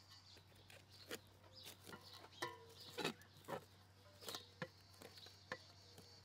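Something knocks sharply against a metal bowl.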